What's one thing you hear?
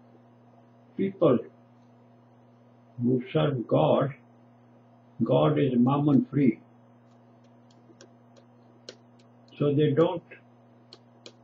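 An elderly man speaks slowly and calmly in short phrases, close by.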